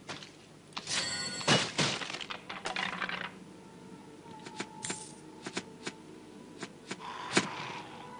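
Blades clash and strike in quick bursts during a fight.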